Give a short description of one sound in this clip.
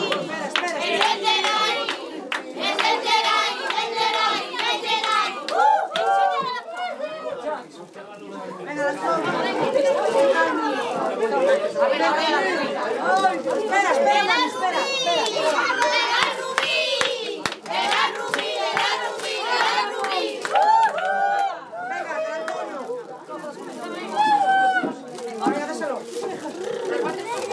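Many children and adults chatter and talk over each other nearby.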